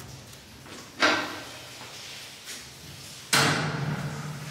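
A metal booth door clanks as it swings shut.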